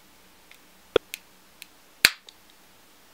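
Small plastic parts click sharply as they are handled.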